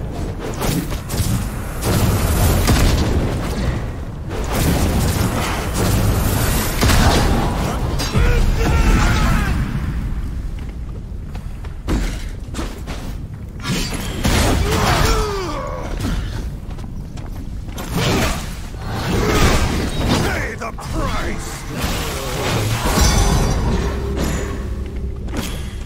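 Magic blasts and sword blows clash in a fast fight.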